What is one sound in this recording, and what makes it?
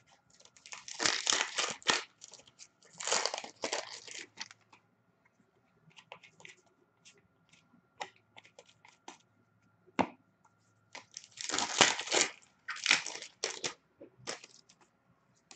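Foil card wrappers crinkle and tear as they are opened.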